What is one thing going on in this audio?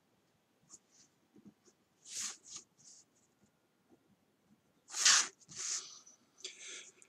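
A pencil scratches across paper.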